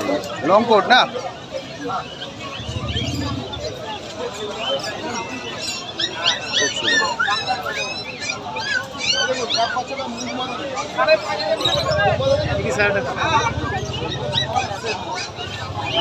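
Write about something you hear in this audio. Birds chirp and twitter busily nearby.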